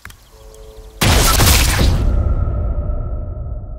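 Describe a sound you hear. A rifle fires a single loud shot that echoes and slowly fades.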